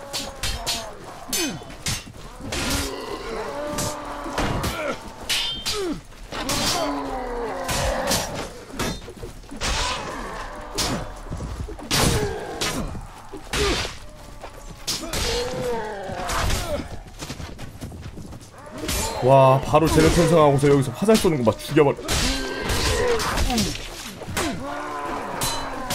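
Swords clash and clang in a battle.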